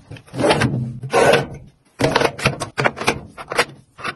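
A drawer slides open on its runners.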